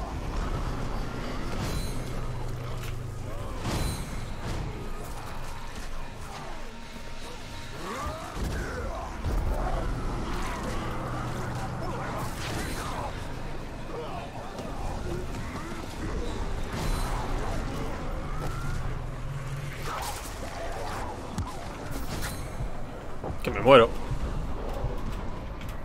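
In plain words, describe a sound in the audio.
Creatures snarl and growl in a fight.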